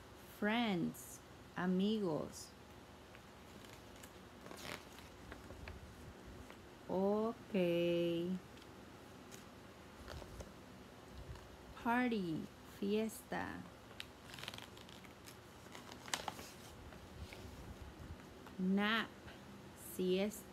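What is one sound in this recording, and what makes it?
A woman reads aloud in short, expressive phrases close by.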